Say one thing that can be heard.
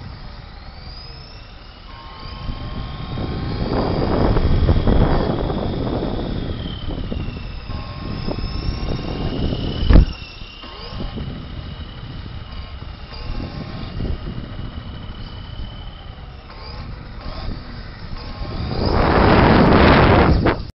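A small electric motor whines loudly as a remote-control car races around a large echoing hall.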